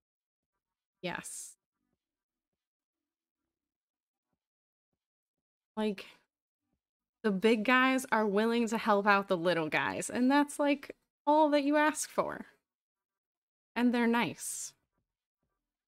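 A woman talks with animation into a close microphone, in short bursts.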